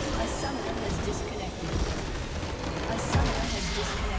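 Game spell effects crash and explode loudly in a battle.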